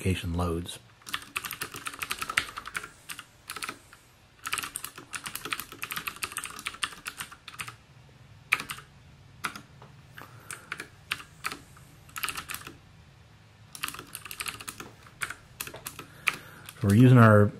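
Keyboard keys clatter in quick bursts of typing.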